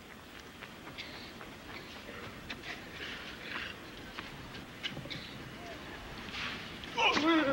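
A tennis ball is struck back and forth with sharp thwacks.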